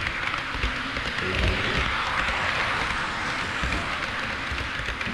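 A model train rumbles and clatters steadily along the track close by.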